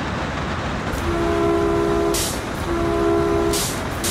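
A train horn blasts twice.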